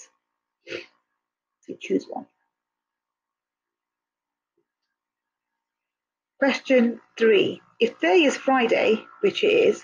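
A young woman speaks calmly and clearly into a microphone, as if over an online call.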